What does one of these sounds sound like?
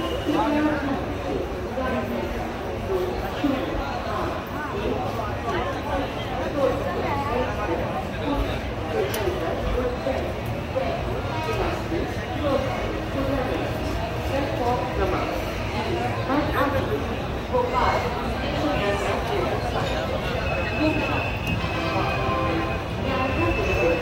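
A train rumbles slowly along the rails.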